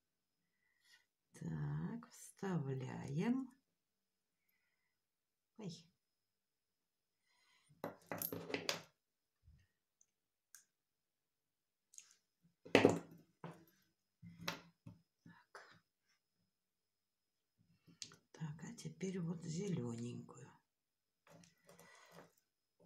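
Small metal pieces clink softly as they are handled.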